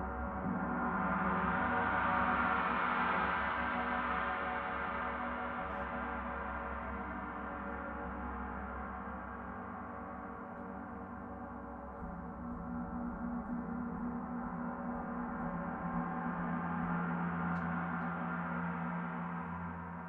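A large gong hums and shimmers in a long, swelling drone as it is played with a soft mallet.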